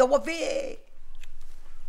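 A woman speaks with feeling, close by.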